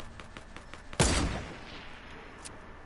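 A sniper rifle fires a single loud shot with a sharp echo.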